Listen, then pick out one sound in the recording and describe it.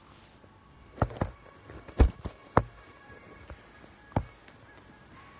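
Sharp knocks and handling thumps sound close up.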